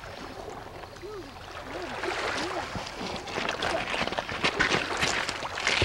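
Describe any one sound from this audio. Small waves lap and splash against rocks at the shore.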